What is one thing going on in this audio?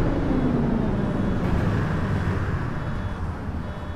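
A diesel city bus engine winds down as the bus slows to a stop.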